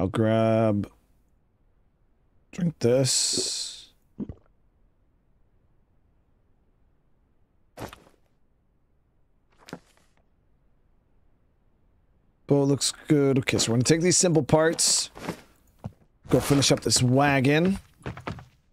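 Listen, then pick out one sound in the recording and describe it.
A young man talks with animation into a close microphone, with pauses.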